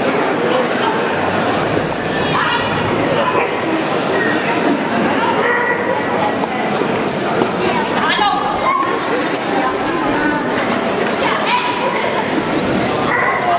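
A young woman calls out commands to a running dog in a large echoing hall.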